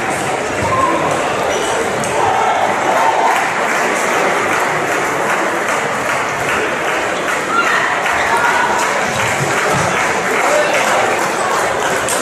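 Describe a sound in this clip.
Ping pong balls click against paddles and the table in a rally.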